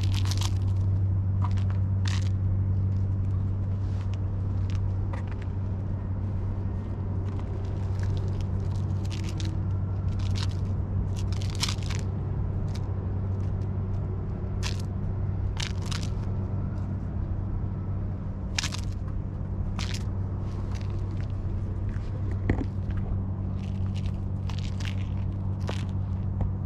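A toy on a string rustles as a cat bats at it.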